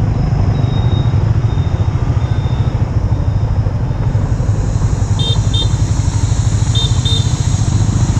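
Motorbike engines hum nearby.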